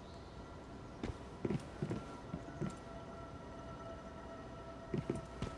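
Footsteps thud on wooden steps and boards.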